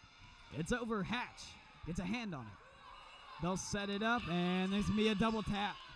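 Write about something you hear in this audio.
A volleyball is struck with a dull slap.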